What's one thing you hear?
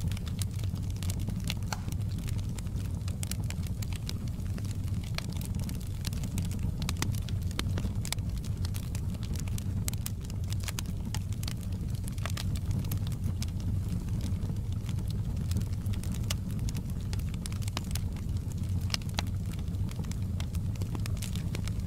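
Flames roar with a low rumble.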